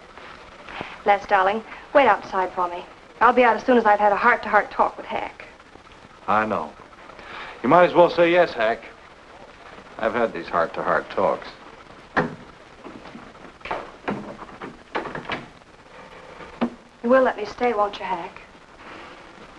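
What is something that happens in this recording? A man speaks calmly and clearly nearby.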